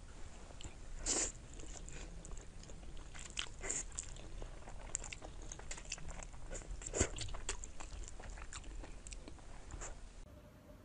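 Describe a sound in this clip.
A young woman slurps noodles loudly close to a microphone.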